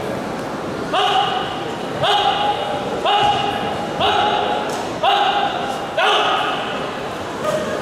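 A gong is struck about once a second, each stroke ringing out.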